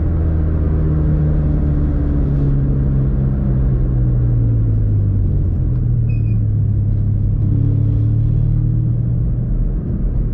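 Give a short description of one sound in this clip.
A car engine hums steadily while driving, heard from inside.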